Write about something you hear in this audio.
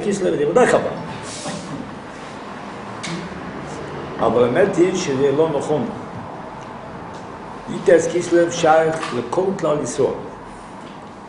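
An elderly man speaks calmly and with pauses, close by.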